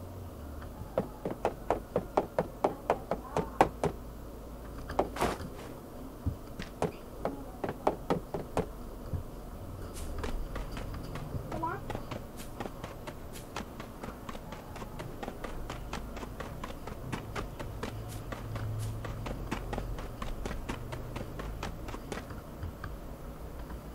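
Quick footsteps patter on hard ground.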